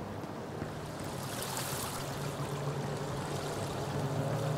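Water splashes from a fountain.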